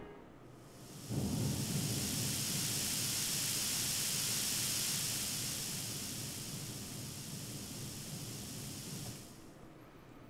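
A low, whooshing magical rumble swells and slowly fades.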